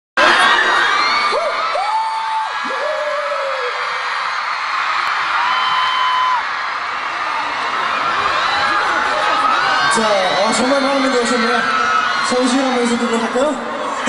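A crowd of young women screams and cheers loudly in a large echoing hall.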